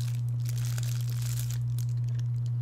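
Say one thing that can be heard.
A young woman bites into a crisp pastry and chews close by.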